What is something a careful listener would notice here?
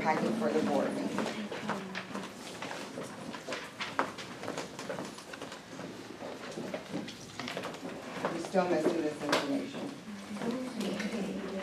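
Heels click on a hard floor as a woman walks.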